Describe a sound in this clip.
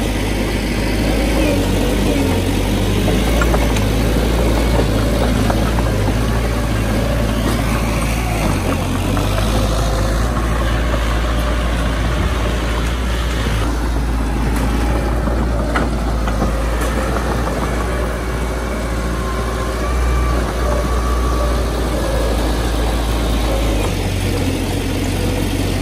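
A bulldozer blade scrapes and pushes loose soil.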